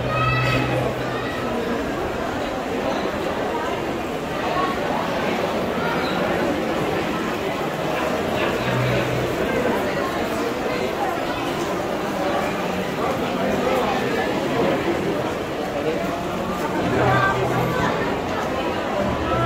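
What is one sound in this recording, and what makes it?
A large crowd chatters and murmurs throughout a large echoing hall.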